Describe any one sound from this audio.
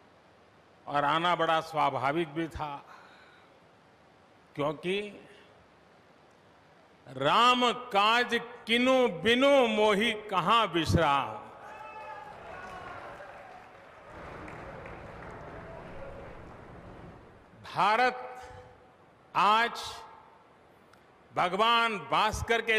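An elderly man speaks slowly and firmly into a microphone, heard through loudspeakers.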